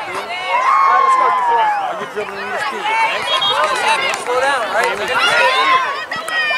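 A crowd of spectators shouts and cheers outdoors, women's and children's voices overlapping.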